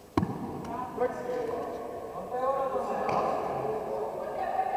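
Young players shout and call out across an echoing gym.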